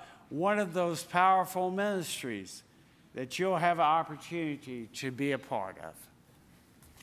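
An elderly man speaks through a microphone in a large echoing hall.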